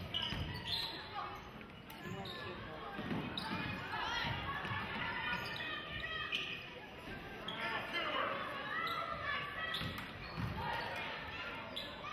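A crowd of spectators murmurs and cheers.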